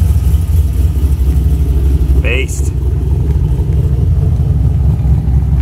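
A car engine rumbles loudly with a deep, throbbing exhaust as the car drives away.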